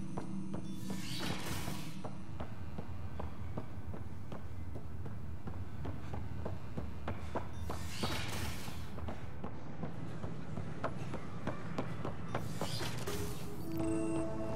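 Heavy doors slide open with a whoosh.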